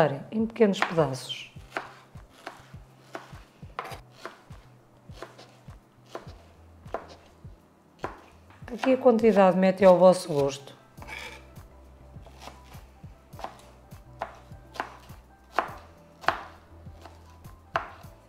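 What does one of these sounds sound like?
A knife chops on a plastic cutting board with quick, sharp knocks.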